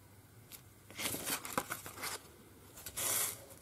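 A sheet of stiff paper is lifted with a papery rustle.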